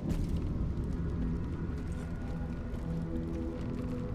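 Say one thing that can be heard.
An arrow whooshes through the air and strikes.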